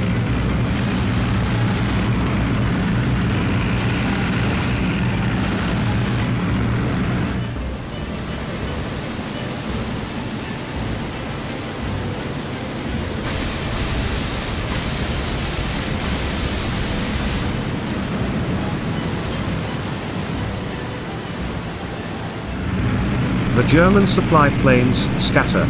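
A propeller aircraft engine drones steadily.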